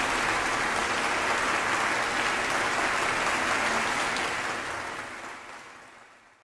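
A large audience applauds in a large hall and the applause fades away.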